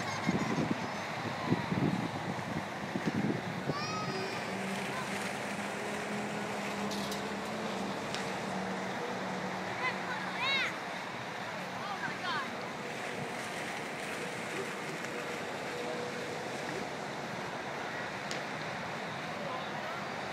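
A large swinging fairground ride whooshes and hums steadily outdoors.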